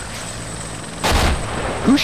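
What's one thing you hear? A loud blast booms nearby.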